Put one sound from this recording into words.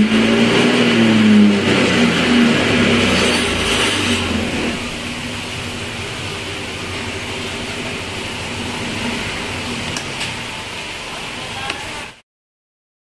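A motorcycle engine idles with a steady hum.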